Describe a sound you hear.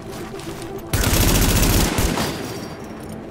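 A rifle fires a burst of gunshots.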